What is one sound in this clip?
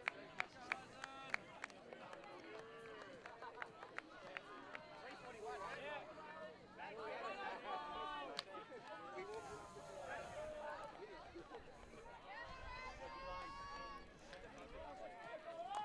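Young men shout and call out to each other outdoors on an open field.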